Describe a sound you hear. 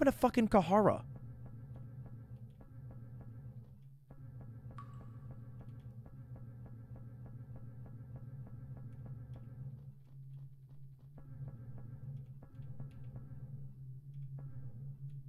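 Quick footsteps tap steadily on a hard floor.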